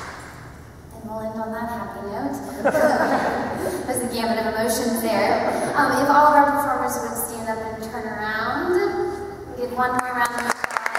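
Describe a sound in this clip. A woman sings into a microphone.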